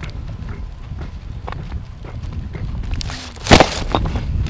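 Bare feet shuffle on dry dirt and stones.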